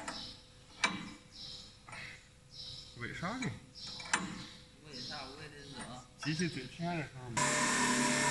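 A ratchet wrench clicks as it is tightened.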